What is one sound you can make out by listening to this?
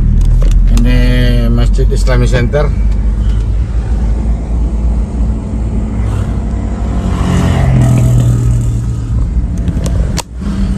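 Motorcycle engines buzz nearby in traffic.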